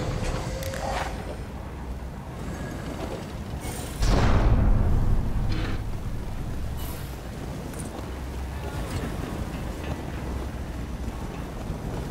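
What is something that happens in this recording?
A burst of flame roars and crackles.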